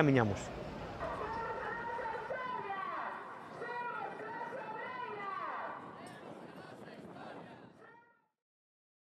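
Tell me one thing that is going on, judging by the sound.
A crowd chants together outdoors.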